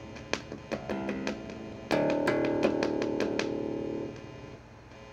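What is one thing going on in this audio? An electric bass guitar plays a few notes.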